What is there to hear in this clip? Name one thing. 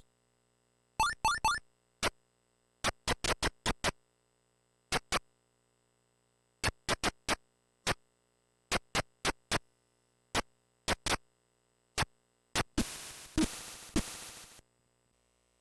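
Short electronic game blips repeat with each step.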